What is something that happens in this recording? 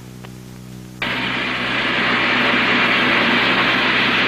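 A smoke machine hisses steadily.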